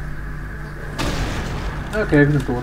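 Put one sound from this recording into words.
A heavy gun fires with a loud blast.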